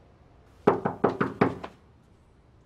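Several sharp knocks sound on a door.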